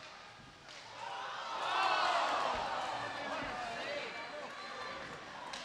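A crowd cheers loudly in an echoing arena.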